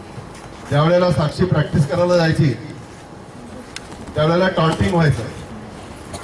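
A man speaks loudly through a microphone and loudspeaker outdoors, in short bursts.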